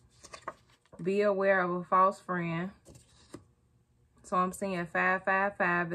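A woman speaks clearly and expressively close by.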